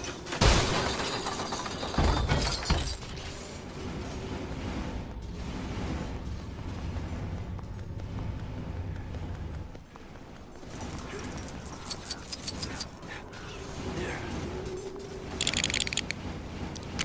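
Game coins jingle and clink as they are collected.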